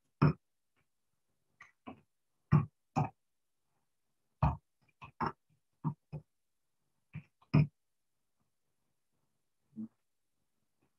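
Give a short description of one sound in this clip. Keys clack on a keyboard in short, uneven bursts.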